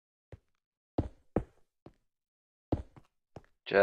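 A stone block is placed with a short thud.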